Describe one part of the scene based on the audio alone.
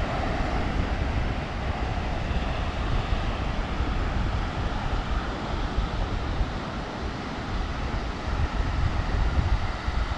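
Waves break and wash onto a beach nearby.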